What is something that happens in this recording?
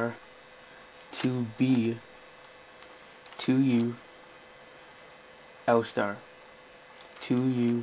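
A plastic puzzle cube clicks softly as its layers are twisted.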